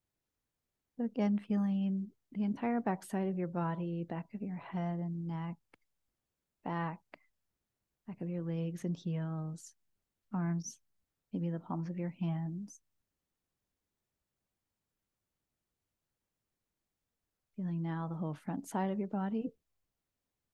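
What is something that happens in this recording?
A woman speaks softly and calmly into a close microphone, with long pauses.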